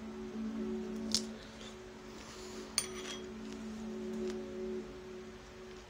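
A young woman chews food close by.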